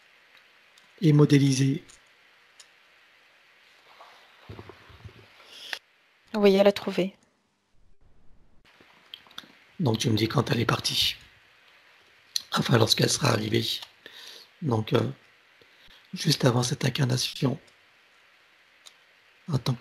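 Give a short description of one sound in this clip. A middle-aged man speaks calmly through a headset microphone over an online call, in short phrases with pauses.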